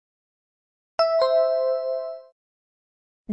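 A bright two-note chime rings out and fades.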